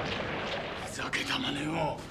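A man asks a question in a gruff voice.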